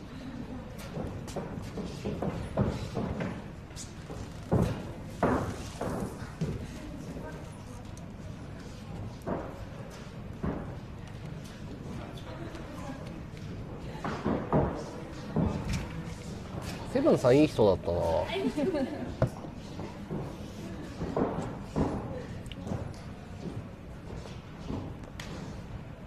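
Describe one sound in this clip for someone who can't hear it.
Punches and kicks smack against bodies.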